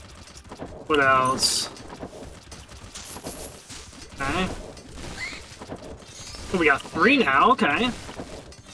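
Weapons slash and strike repeatedly in a busy game battle.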